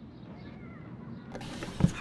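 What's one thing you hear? A drawer slides open.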